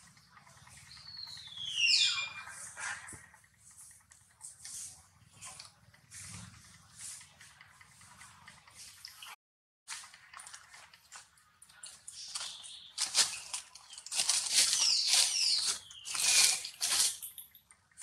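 A baby monkey squeals in high, falling cries close by.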